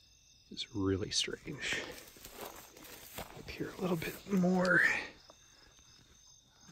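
Grass and leaves rustle as they are brushed aside.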